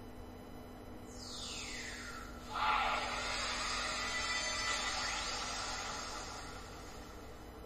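A magical burst whooshes loudly, rumbles and slowly fades.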